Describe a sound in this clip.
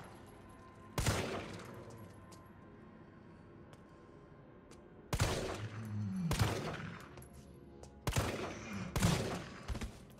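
A handgun fires sharp shots that echo down a corridor.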